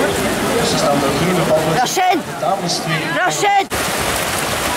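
A crowd cheers and shouts from the riverbank.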